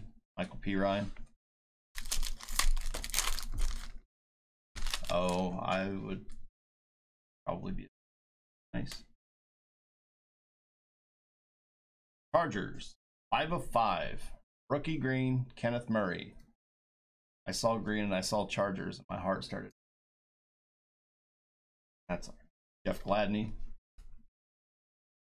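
A man talks with animation, close to a microphone.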